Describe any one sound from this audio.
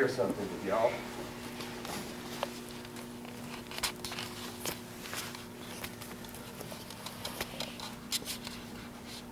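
Wooden staffs clack on a hard floor.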